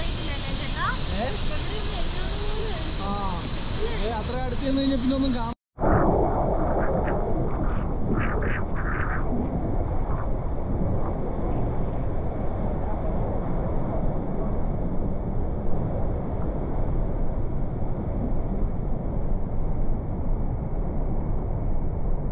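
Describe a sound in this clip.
A huge waterfall roars steadily close by.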